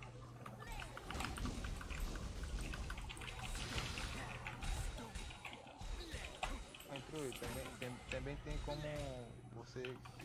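Magic spells burst and crackle during a fight.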